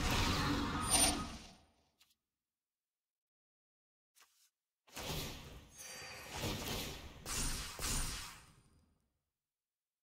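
Digital card game sound effects whoosh and chime in short bursts.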